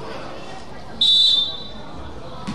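A referee's whistle blows sharply in an echoing hall.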